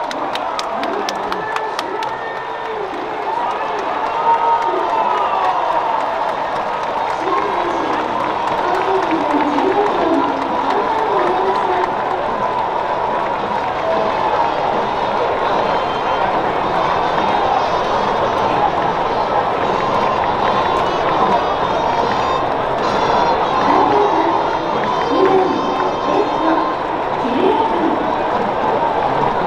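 A large stadium crowd cheers and chants steadily.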